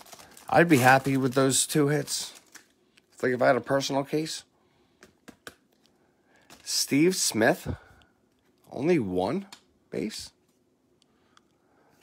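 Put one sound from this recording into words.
Trading cards slide and flick against each other.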